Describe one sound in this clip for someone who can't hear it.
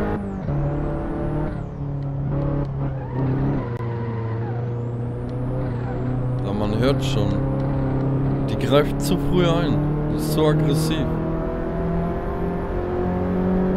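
A small car engine hums steadily and shifts pitch as the car drives.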